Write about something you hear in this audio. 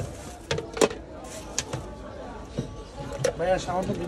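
Watermelon pieces drop into a plastic blender jug.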